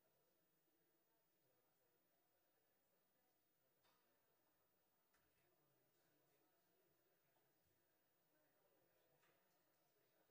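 A young woman speaks calmly into a microphone in an echoing hall.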